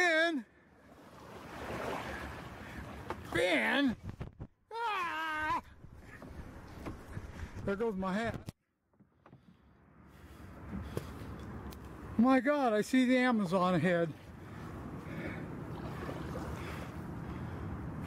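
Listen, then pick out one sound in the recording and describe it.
Water laps gently against a kayak.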